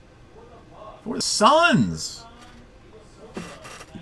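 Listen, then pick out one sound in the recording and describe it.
A card is set down on a tabletop with a light tap.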